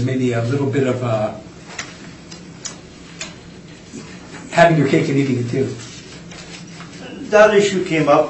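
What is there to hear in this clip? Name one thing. A man speaks calmly at a meeting, heard through a room microphone.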